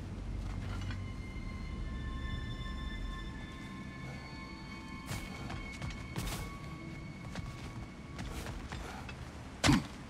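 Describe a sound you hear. Shimmering magical chimes ring out steadily.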